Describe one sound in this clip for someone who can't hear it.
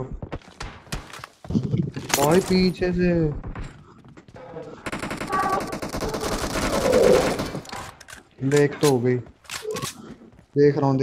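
Gunshots crack in short bursts.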